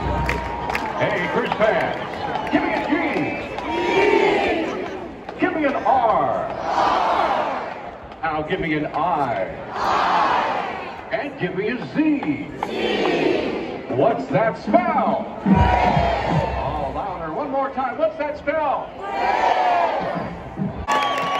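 A marching band's brass plays a loud melody outdoors.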